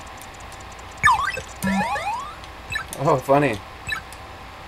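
Bright chiming electronic tones play as treasure is collected.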